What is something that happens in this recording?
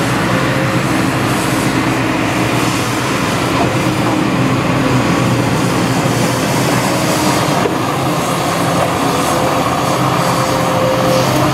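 An excavator engine rumbles steadily close by.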